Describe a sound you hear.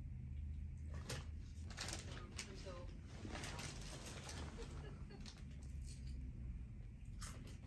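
A crisp packet rustles and crackles close by.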